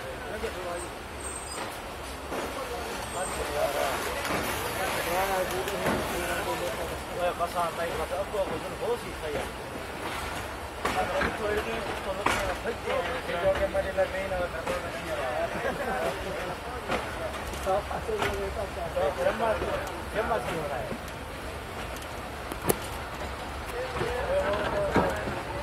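A train rumbles along the track, heard from inside a carriage.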